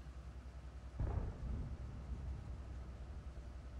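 A cannon shot booms and echoes away.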